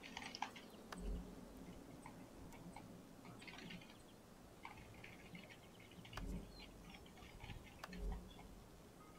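Soft interface clicks sound as menu items are picked.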